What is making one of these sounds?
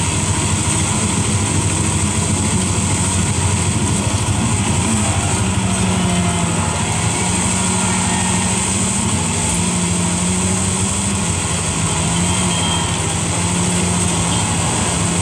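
Tyres rumble and crunch over a dirt road through a loudspeaker.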